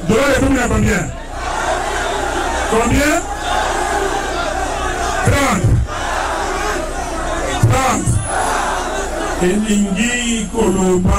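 A man speaks loudly and forcefully into a microphone over loudspeakers.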